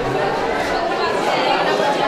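An adult woman talks animatedly nearby.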